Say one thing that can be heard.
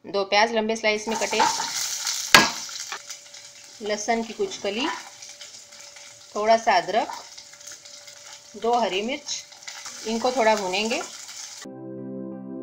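Onions sizzle and hiss as they fry in oil.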